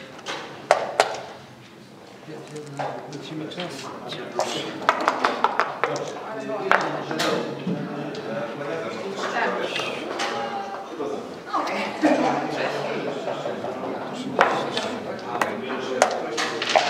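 Wooden checkers click against a board.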